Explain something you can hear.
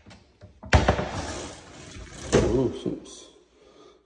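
A wooden drawer slides open with a knock.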